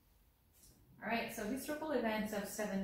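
A young woman reads aloud clearly, close to a microphone.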